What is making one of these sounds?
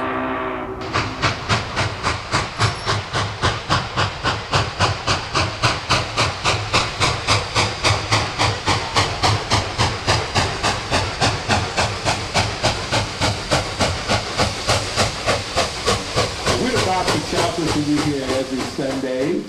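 A steam locomotive chuffs in a fast, steady rhythm as it approaches.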